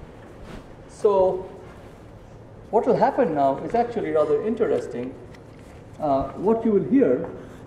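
A man speaks calmly and clearly, lecturing.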